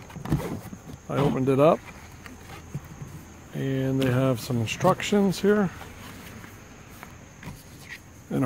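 Paper rustles as a leaflet is unfolded and handled.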